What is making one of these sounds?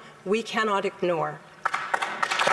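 A woman speaks into a microphone.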